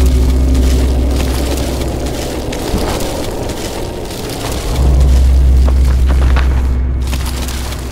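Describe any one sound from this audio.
Fabric bags rustle as they are searched.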